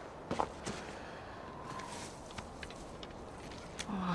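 Footsteps crunch in snow.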